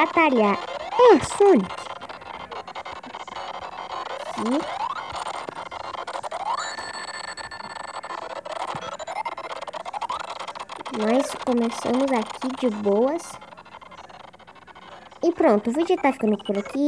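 Upbeat electronic game music plays throughout.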